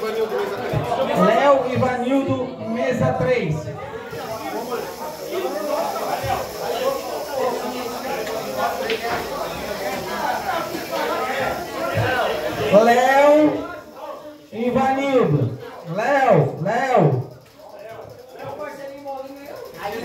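Men talk and shout over each other in a lively crowd nearby.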